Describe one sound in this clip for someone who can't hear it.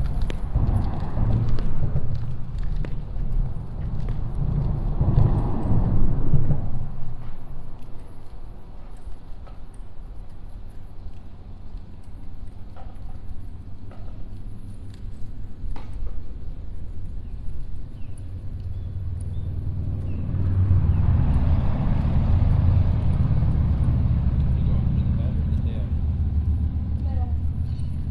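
Water laps gently against a concrete wall.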